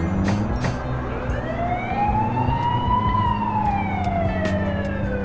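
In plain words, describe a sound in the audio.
A police siren wails, slowly rising and then falling in pitch.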